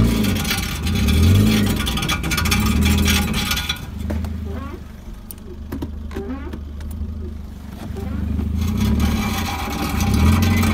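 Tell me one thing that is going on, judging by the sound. A car engine rumbles low and steadily.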